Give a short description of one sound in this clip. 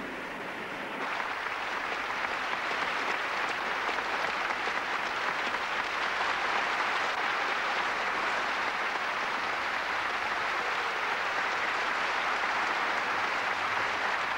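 A large audience applauds steadily in a hall.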